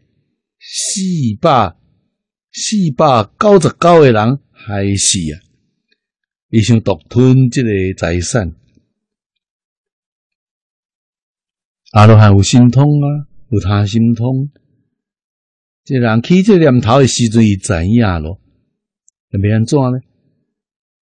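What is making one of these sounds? An elderly man speaks calmly into a close microphone, in short phrases with pauses.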